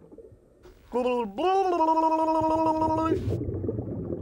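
A man's voice sings a long, wavering note in a silly tone.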